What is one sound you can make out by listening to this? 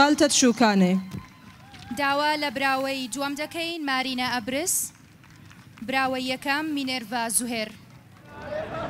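A young woman announces through a microphone over loudspeakers.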